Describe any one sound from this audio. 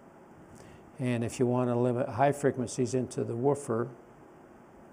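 A man speaks slowly nearby.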